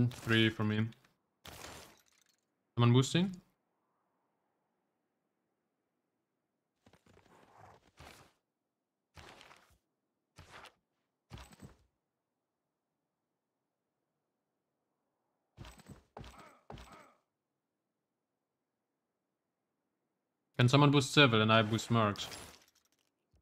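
A young man talks into a close microphone in short bursts, with animation.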